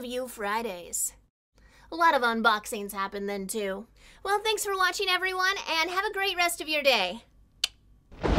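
A young woman talks cheerfully and animatedly into a close microphone.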